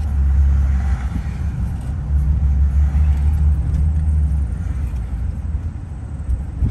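Tyres rumble on the road from inside a moving car.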